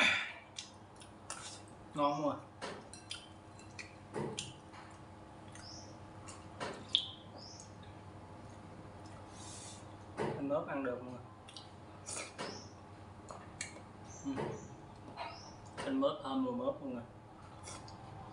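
A spoon and chopsticks clink against bowls.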